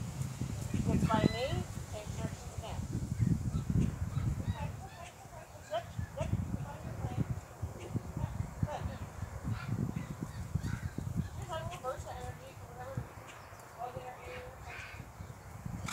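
A young girl calls out to a horse.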